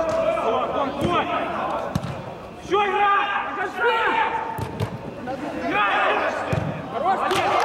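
A football is kicked with a dull thump.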